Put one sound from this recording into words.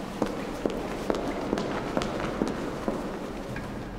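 Footsteps click across a hard floor in a large echoing hall.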